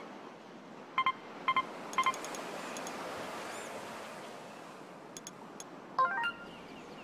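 Short electronic game beeps chime several times.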